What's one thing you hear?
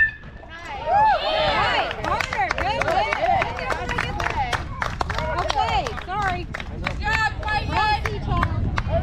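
Young players and spectators shout and cheer from across an open field.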